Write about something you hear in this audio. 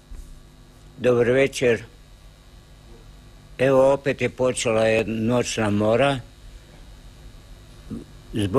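An elderly man speaks calmly and close to a microphone, in short bursts with pauses.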